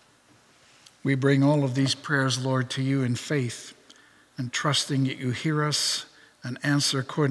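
A middle-aged man speaks calmly into a microphone in an echoing hall.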